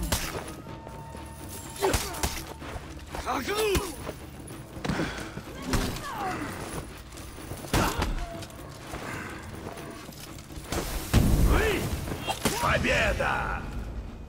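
Metal blades clash and clang sharply in a fight.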